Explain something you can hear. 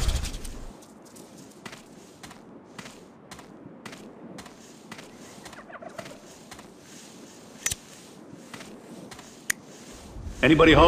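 Footsteps crunch on sand and wooden planks.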